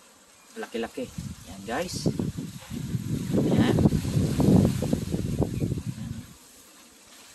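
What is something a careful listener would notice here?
Leaves rustle as a branch is handled close by.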